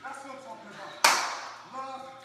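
Two people slap hands in a sharp high five.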